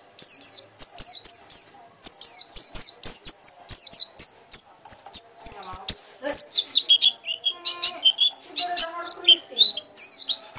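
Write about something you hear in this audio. A small bird sings a rapid, high, chirping song close by.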